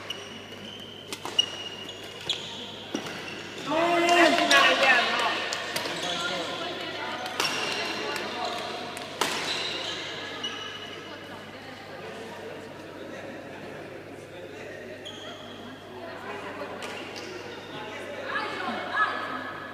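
Rackets strike a shuttlecock with sharp smacks in an echoing hall.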